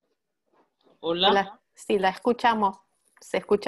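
A woman speaks calmly and clearly over an online call.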